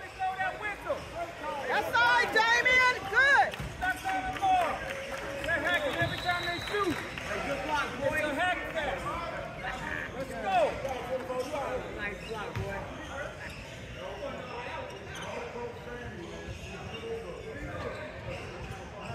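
Young men talk and call out to each other in a large echoing gym.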